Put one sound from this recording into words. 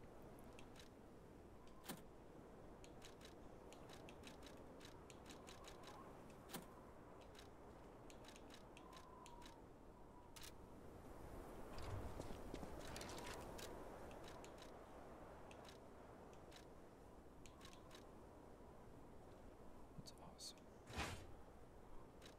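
Soft menu clicks tick as selections change.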